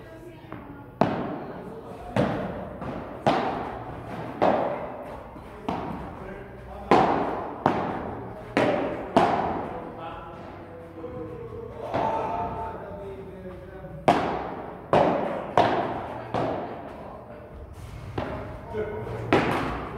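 Paddles strike a ball with sharp hollow pops that echo in a large hall.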